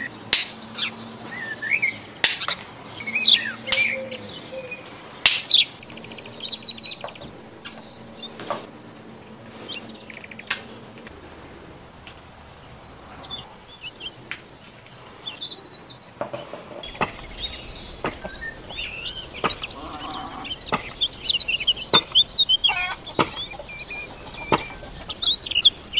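Small parts click and tap sharply.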